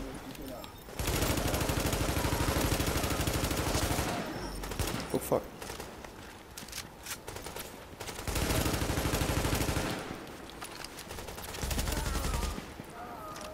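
A rifle fires in rapid, rattling bursts.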